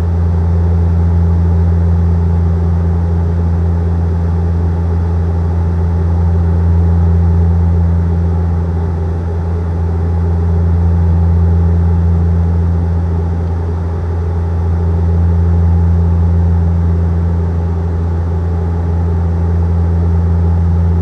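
A jet airliner's engines drone with a steady, low hum heard from inside the cabin.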